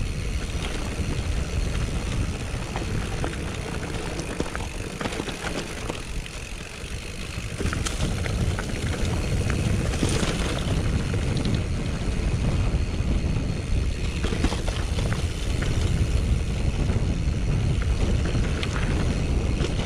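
A bicycle's frame rattles and clicks over bumps.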